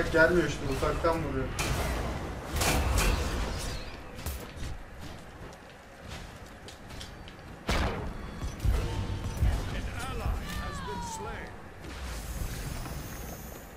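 Game weapons clash and magic blasts boom in quick bursts.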